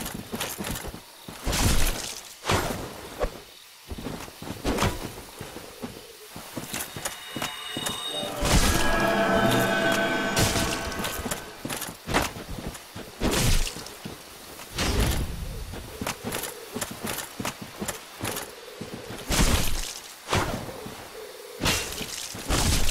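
Swords clash and strike with sharp metallic hits.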